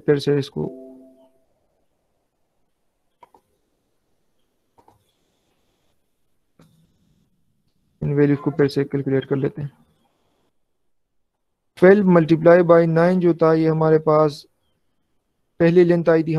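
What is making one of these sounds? A young man talks calmly through a microphone, in short bursts with pauses.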